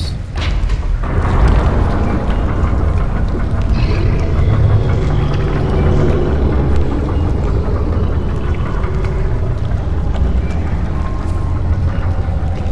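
A heavy stone mechanism rumbles and grinds steadily.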